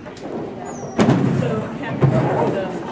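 A dog thumps onto a wooden ramp.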